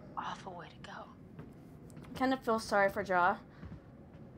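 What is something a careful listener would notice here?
A young woman speaks quietly and fearfully.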